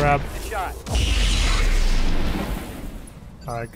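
Laser weapons fire with a loud, rushing blast.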